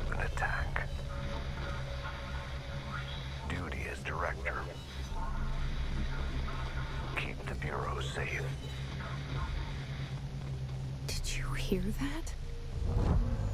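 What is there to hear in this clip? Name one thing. A middle-aged man speaks slowly and gravely, close by.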